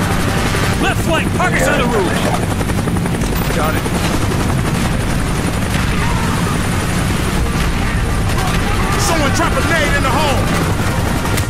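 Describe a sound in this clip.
Men shout orders over the battle noise.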